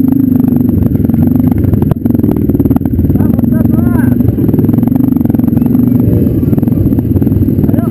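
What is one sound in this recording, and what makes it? Other dirt bike engines rumble nearby.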